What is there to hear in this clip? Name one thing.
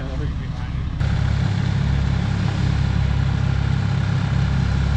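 A wood chipper's engine roars under load as branches are fed in.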